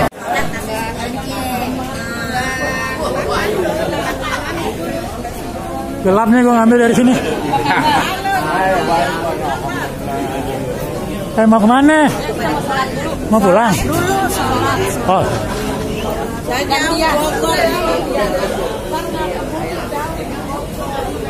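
Several men and women chatter around close by.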